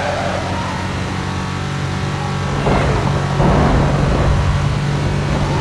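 Tyres hiss on the road.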